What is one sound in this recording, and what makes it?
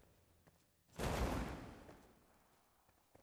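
A grenade explodes with a deep boom.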